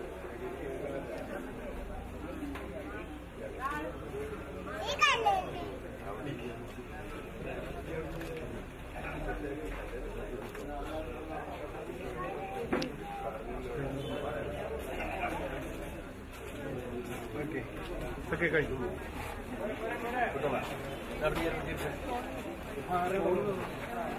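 A group of women and men murmur quietly close by.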